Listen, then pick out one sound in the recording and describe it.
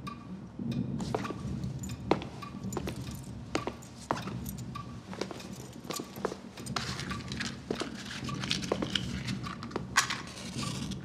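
Footsteps tap across a wooden floor.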